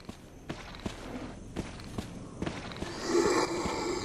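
Footsteps tread on a gritty stone floor.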